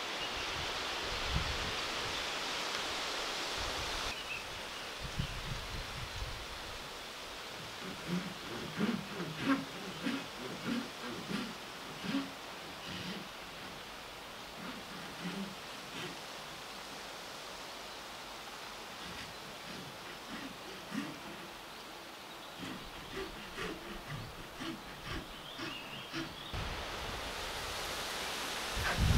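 Wind rustles through leaves and grass outdoors.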